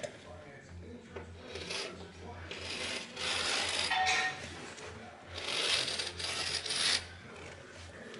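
A carpet edge scrapes and rustles as a man pulls at it.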